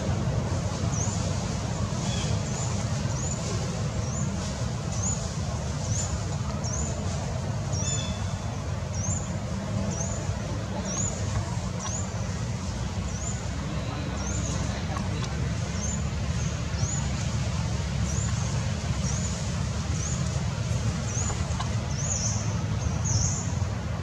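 A baby monkey suckles with soft, wet smacking sounds.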